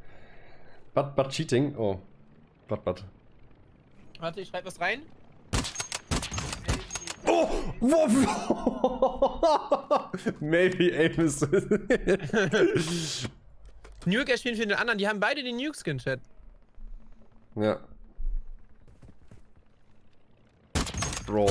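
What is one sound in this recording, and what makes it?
A young man talks with animation into a close microphone, laughing at times.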